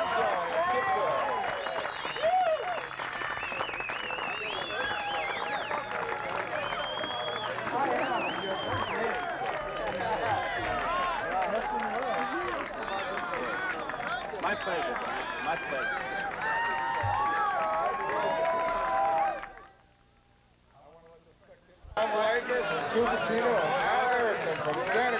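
A large outdoor crowd of young people chatters and calls out at once.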